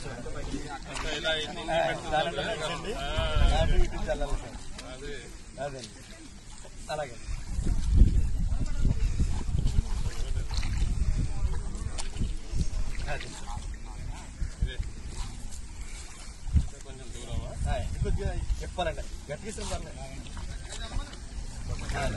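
Men talk with animation outdoors, close by.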